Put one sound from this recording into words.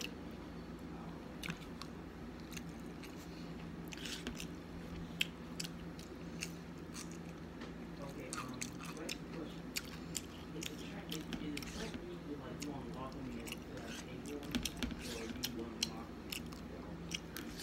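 A young woman chews food with her mouth close by.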